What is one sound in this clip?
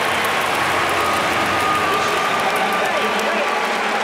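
A man shouts encouragement from the stands.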